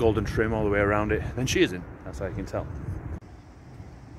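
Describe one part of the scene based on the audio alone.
A man speaks close to the microphone.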